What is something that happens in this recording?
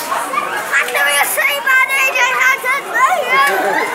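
A young boy shouts excitedly close by.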